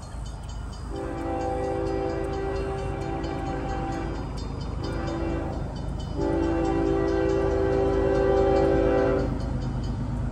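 A train horn blows in long loud blasts.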